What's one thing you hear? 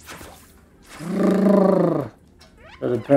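A dog whines loudly.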